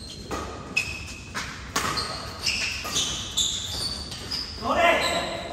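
Sports shoes squeak on a court floor.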